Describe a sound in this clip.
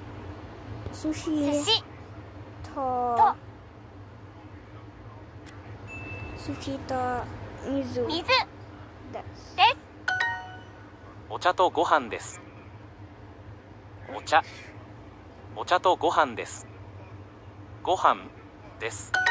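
Short clicking chimes sound as word tiles are tapped on a phone.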